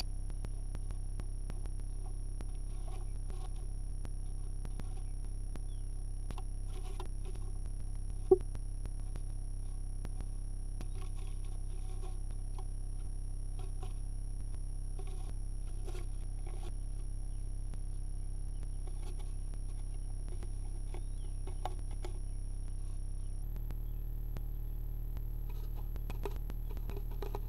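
A small bird rustles and scratches softly in dry nest material, close by.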